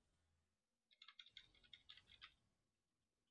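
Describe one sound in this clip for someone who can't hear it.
Magic spells crackle and whoosh in a fight.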